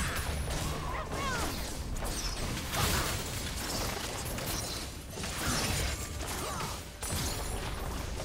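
Spell and weapon hits from a fantasy battle game clash in a busy fight.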